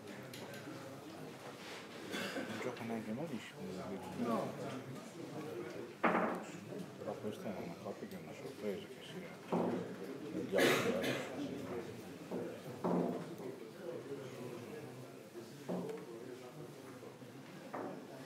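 Several men talk casually nearby.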